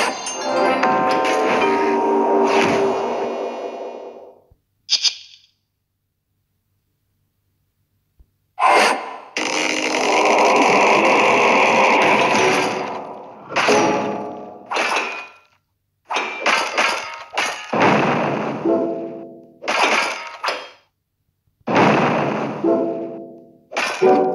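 Game sound effects of magical attacks chime and crash in bursts.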